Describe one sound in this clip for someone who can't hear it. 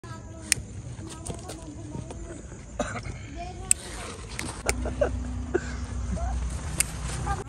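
A lighter clicks several times.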